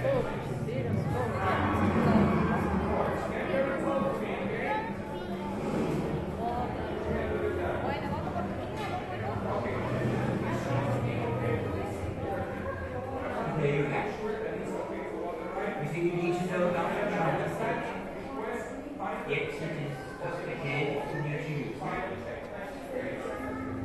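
A crowd of men and women murmur and talk in a large echoing hall.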